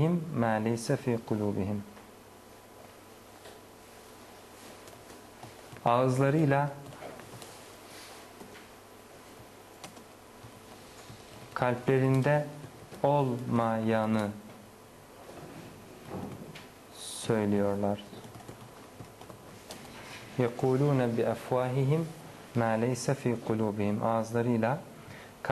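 A man speaks slowly and calmly into a close microphone, in short phrases with pauses.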